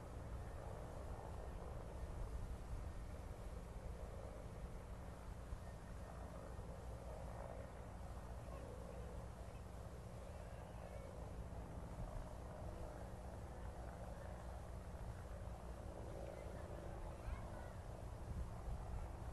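A crowd of people murmurs and chatters softly outdoors.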